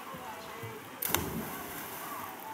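A person splashes into water.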